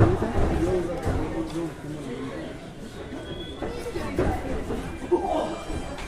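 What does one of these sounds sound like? Footsteps thump across a wrestling ring.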